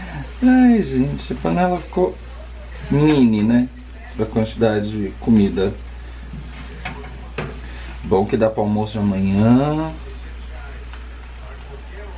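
Utensils scrape and clatter against a pan as food is stirred.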